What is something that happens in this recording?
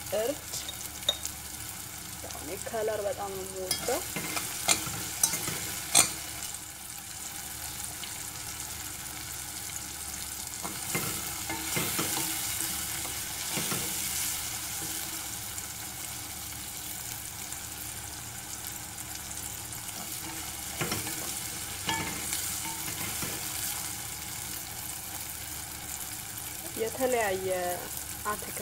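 Vegetables sizzle in a hot pot.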